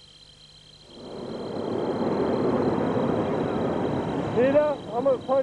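A hot-air balloon burner roars loudly.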